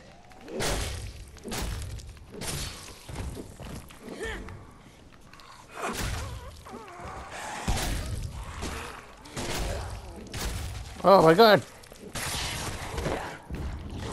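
Zombies groan and snarl nearby.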